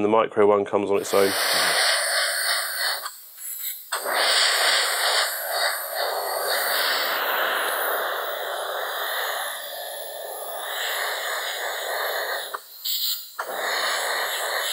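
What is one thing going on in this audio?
An airbrush hisses steadily as it sprays.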